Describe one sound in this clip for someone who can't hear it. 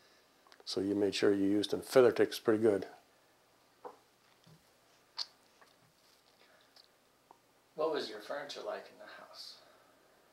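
An elderly man speaks calmly and closely into a microphone, with pauses.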